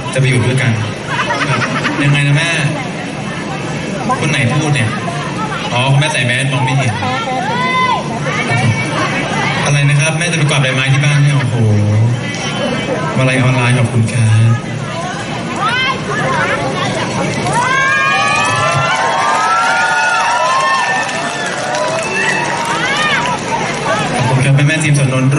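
A young man sings loudly through a microphone and loudspeakers.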